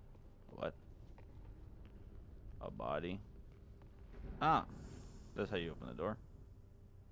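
A young man talks in short bursts close to a microphone.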